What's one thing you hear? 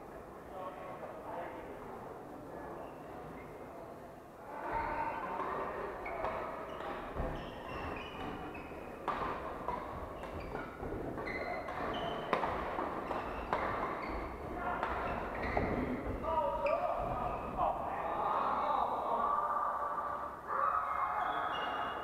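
Shuttlecocks are struck with rackets in a large echoing hall.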